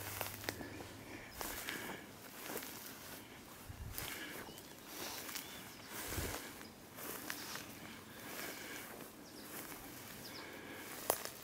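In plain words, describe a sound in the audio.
Footsteps rustle and crunch through dry grass and brush.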